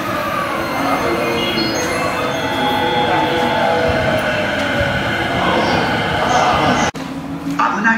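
A train rolls past with a rumble and squealing wheels.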